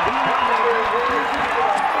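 Young men shout and cheer excitedly close by.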